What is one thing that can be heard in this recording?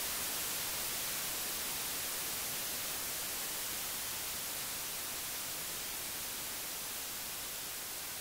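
Small waves wash gently onto a stony shore.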